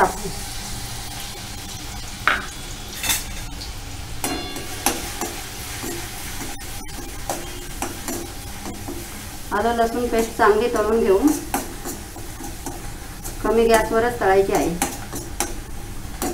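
Hot oil sizzles in a pan.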